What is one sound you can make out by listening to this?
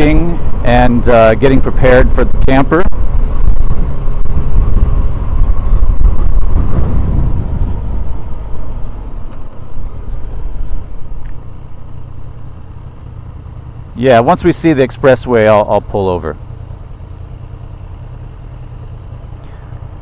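A motorcycle engine rumbles close by and then quietens as the bike slows.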